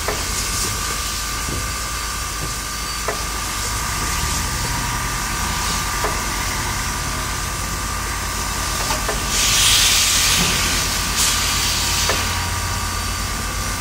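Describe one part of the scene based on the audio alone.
A steam locomotive chuffs steadily as it pulls away.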